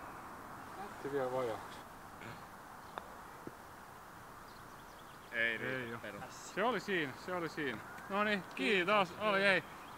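A man speaks casually at a distance outdoors.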